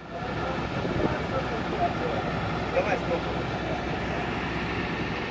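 A truck crane's engine rumbles steadily.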